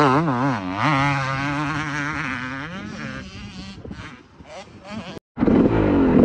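A motocross bike engine revs hard nearby, then fades into the distance.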